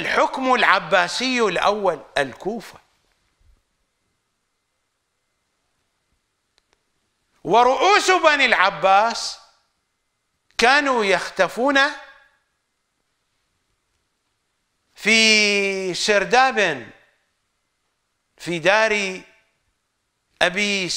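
An older man speaks with animation into a microphone, with long pauses between phrases.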